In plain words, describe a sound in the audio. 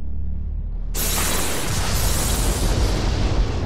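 A loud thunderclap cracks overhead.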